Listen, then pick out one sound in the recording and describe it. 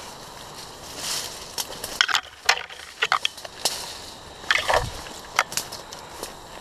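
A paintball marker fires several sharp, quick shots.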